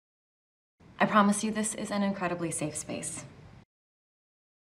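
A young woman speaks warmly and softly.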